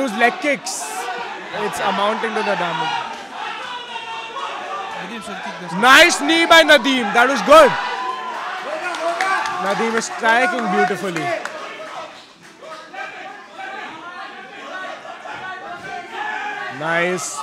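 A crowd shouts and cheers loudly around a fight.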